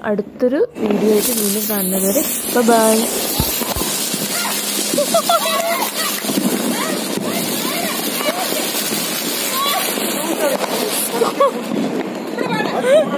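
A firework fountain hisses and sprays sparks.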